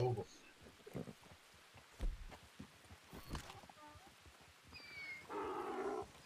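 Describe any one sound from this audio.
Horses' hooves thud on soft ground.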